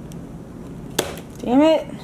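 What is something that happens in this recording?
A cup knocks on a hard counter.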